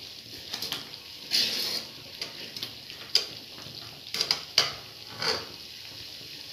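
A metal ladle scrapes and clinks against a metal pan.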